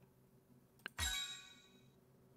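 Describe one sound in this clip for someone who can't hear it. A short video game chime rings.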